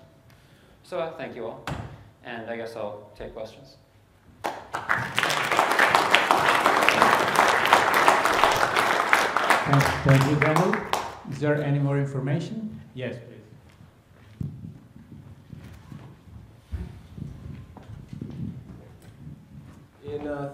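A young man speaks to an audience through a microphone in a large hall.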